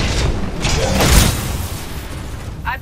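An explosion booms and rumbles.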